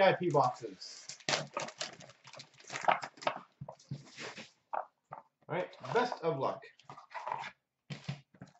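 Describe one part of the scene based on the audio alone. A stack of cards rustles and slides in hands.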